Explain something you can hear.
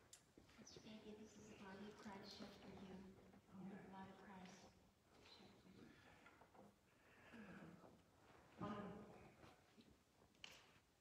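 An elderly woman speaks calmly, slightly muffled, in a reverberant hall.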